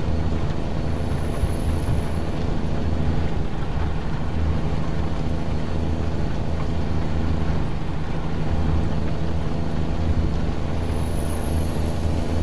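A truck engine drones steadily at low pitch.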